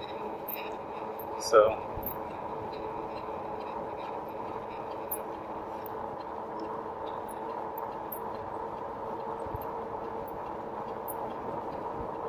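Wind rushes steadily past while riding.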